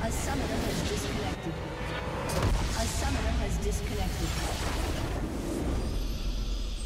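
A crystal structure shatters with a loud rumbling explosion.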